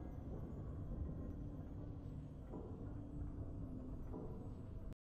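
Triumphant game music plays a steady tune.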